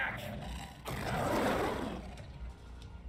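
A big cat roars loudly.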